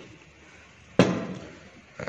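A metal lid clanks shut on a steel pot.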